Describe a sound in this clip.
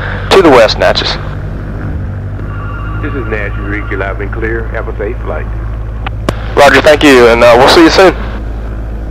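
A man speaks through a headset intercom, close and slightly distorted.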